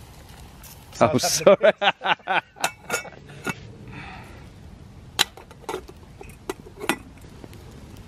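Metal lids clink and clatter onto cooking pots.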